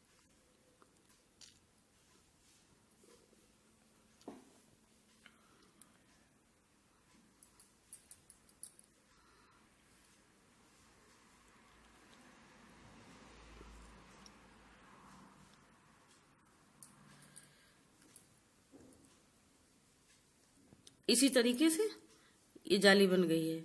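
A needle and thread rustle softly as they are pulled through cloth.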